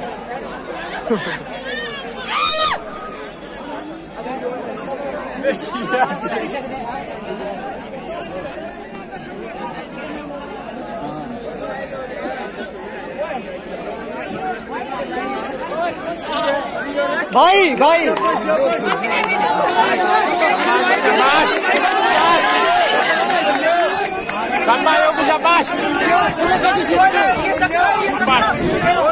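A crowd of young men chatters and calls out outdoors.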